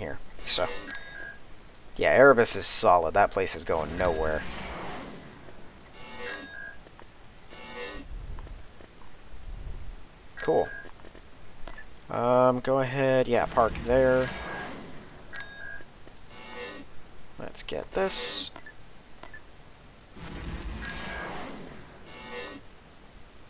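Short electronic interface beeps sound now and then.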